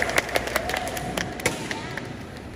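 Karate uniforms snap sharply with quick strikes in a large echoing hall.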